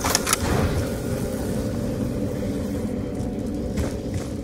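A fire crackles and burns.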